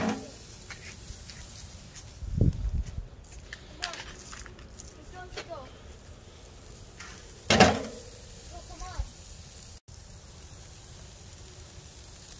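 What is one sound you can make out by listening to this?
Food sizzles faintly on a hot charcoal grill.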